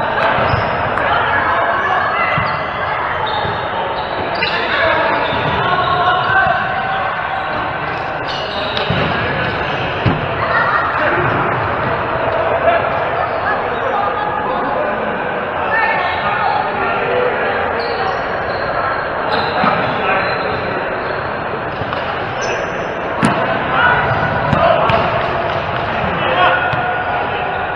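Adult players call out to each other in a large echoing hall.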